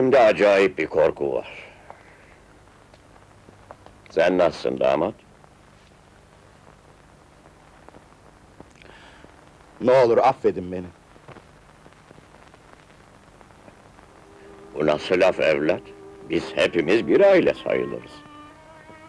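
An elderly man speaks sternly and close by, in short bursts with pauses.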